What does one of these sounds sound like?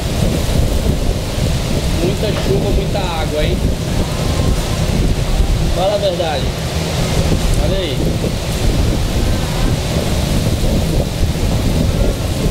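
Strong wind buffets and roars outdoors.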